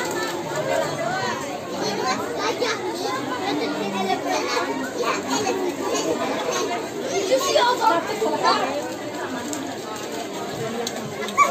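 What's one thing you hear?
A crowd of women and children chatter nearby in an echoing room.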